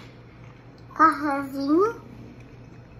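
A young child calls out in a high, sing-song voice.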